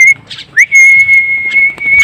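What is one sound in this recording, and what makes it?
A bird's wings flap as it flies.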